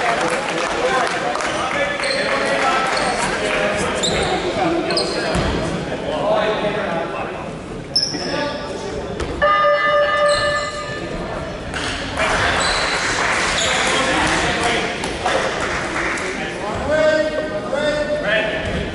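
Young players call out to each other across the echoing hall.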